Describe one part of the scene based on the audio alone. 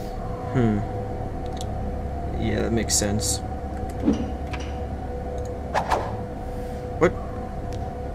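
Short thuds and whooshes sound now and then.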